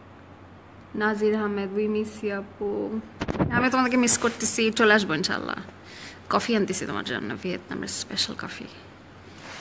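A young woman speaks softly and close to a phone microphone.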